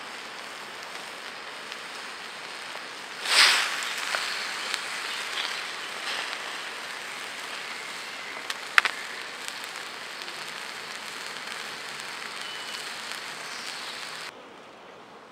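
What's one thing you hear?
Fish sizzles in oil in a metal pan.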